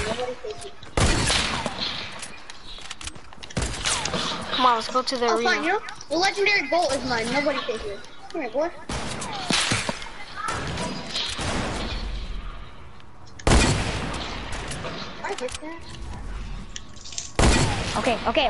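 Gunshots bang in short bursts.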